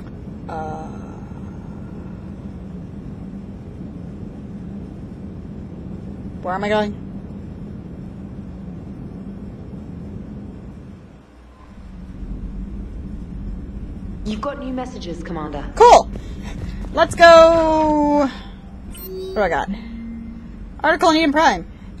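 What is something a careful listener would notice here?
A young woman talks casually into a microphone close by.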